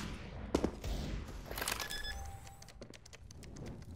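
A bomb keypad beeps as buttons are pressed.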